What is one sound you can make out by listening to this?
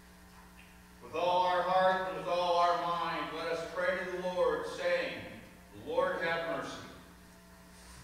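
A man sings in a slow, drawn-out voice that echoes through a large hall.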